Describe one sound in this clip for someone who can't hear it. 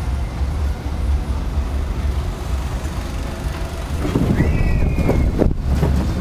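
Wind buffets the microphone outdoors with a low, steady rumble.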